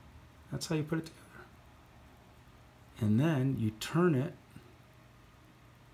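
Small plastic parts click softly between fingers.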